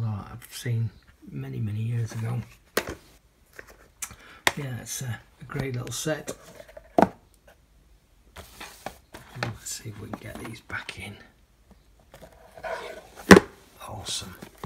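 Plastic disc cases click and knock as they are handled.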